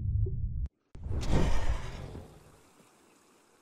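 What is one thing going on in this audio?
Water splashes as a creature breaks the surface.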